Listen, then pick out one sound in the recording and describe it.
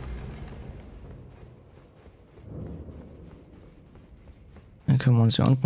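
Footsteps tap on a stone floor in an echoing passage.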